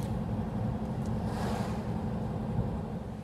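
An oncoming car whooshes past.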